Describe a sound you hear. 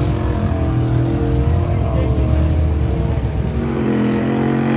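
Big truck engines rumble and roar loudly.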